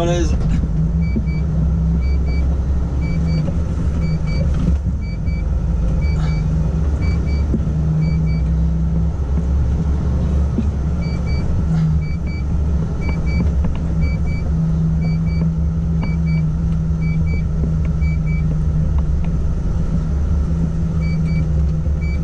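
A turn signal ticks in a steady rhythm.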